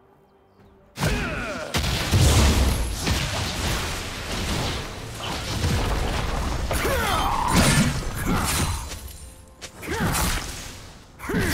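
Blades slash and magic blasts crackle in a fast fight.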